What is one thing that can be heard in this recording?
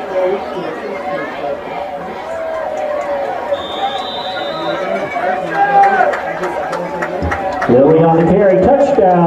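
A crowd cheers loudly in a large outdoor stadium.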